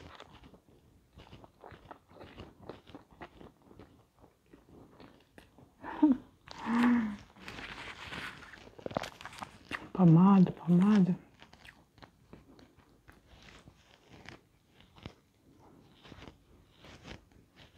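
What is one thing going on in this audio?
A woman chews and crunches food close to a microphone.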